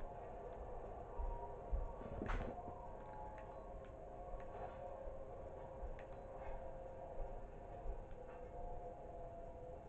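Footsteps creak and thud on wooden floorboards through a television speaker.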